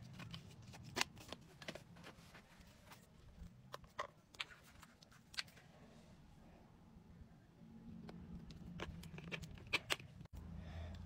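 Plastic containers click and tap as they are handled.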